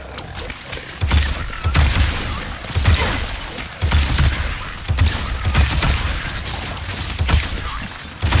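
Weapon blasts crackle and boom in quick bursts.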